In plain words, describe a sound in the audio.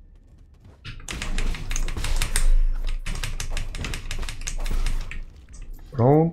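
Video game sound effects whoosh and clang in quick bursts.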